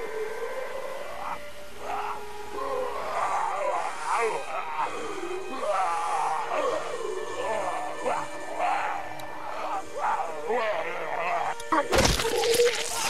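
A man speaks urgently and strains nearby.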